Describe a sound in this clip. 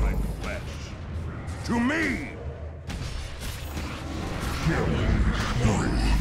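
Weapons clash and strike in a game battle.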